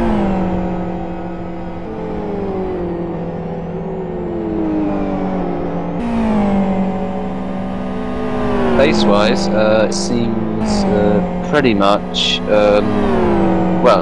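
Racing car engines roar and whine as they shift gears.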